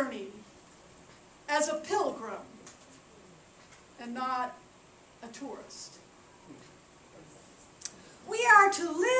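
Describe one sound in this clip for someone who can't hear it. A middle-aged woman speaks with animation through a head microphone, in short bursts with pauses.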